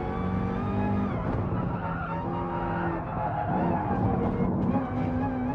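A racing car engine roars, its pitch dropping and rising as it shifts gears.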